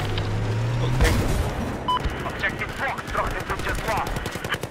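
Gunshots bang out in quick bursts.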